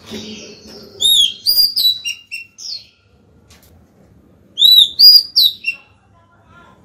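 A small bird sings loud, bright whistling phrases close by.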